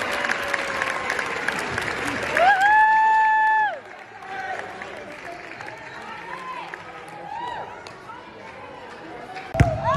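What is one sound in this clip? Young children shout and squeal with excitement.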